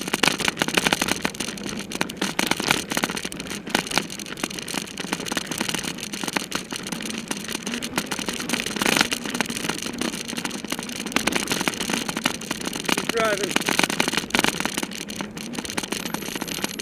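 Bicycle tyres rattle and crunch over a bumpy dirt trail.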